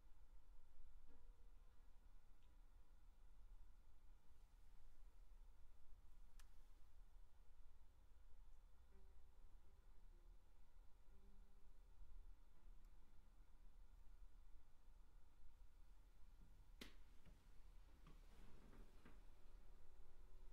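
Soft tones ring faintly as someone touches the strings inside a piano by hand.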